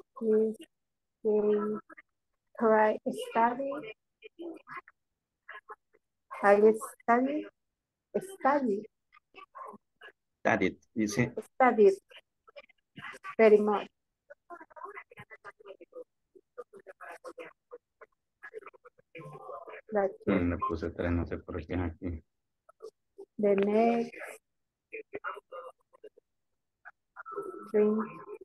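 A woman speaks calmly and clearly over an online call, with pauses between phrases.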